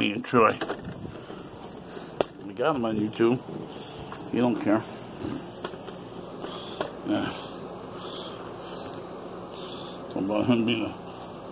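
An elderly man talks close to the microphone.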